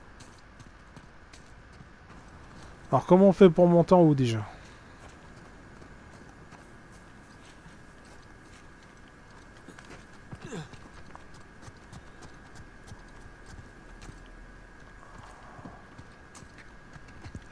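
Footsteps patter quickly on stone and dirt.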